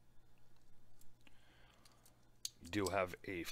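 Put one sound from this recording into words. Metal watch bracelet links clink softly as they are handled.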